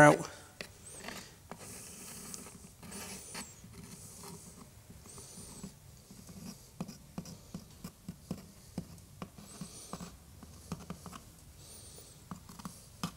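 A screwdriver clicks and scrapes as it turns small screws.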